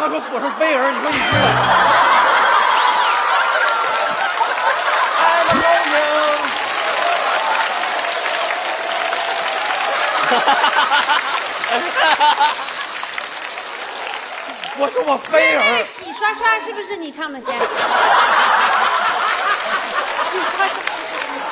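A studio audience laughs loudly and cheers.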